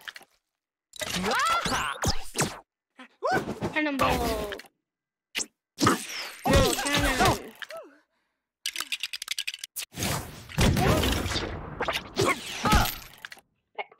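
Game sound effects of fighting and zaps play.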